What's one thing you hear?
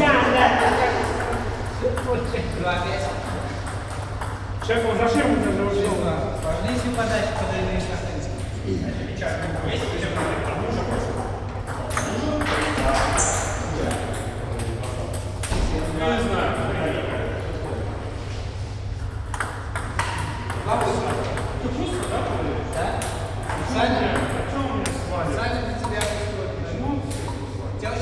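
Table tennis balls click sharply off paddles and tables.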